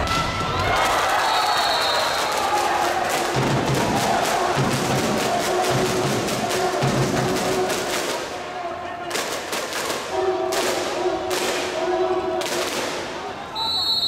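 A volleyball is struck hard with sharp slaps.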